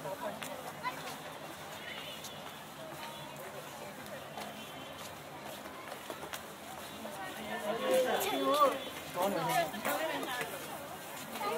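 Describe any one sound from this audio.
Several adults talk quietly in the distance.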